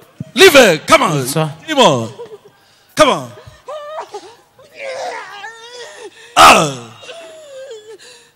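A young woman wails and cries out loudly into a nearby microphone.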